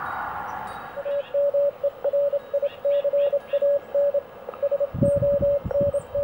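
A small radio beeps out a steady pattern of short and long Morse code tones.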